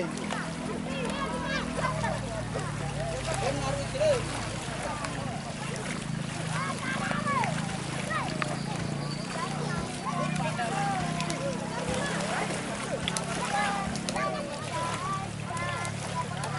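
Children shout and laugh in the water at a distance.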